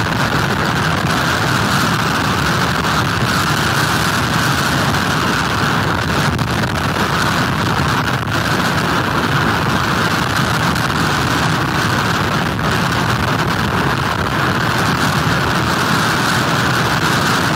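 Heavy surf crashes and rumbles onto the shore.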